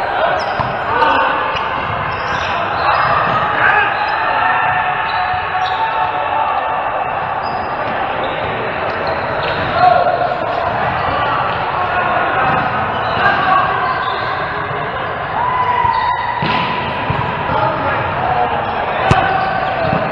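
A volleyball is struck with the hands.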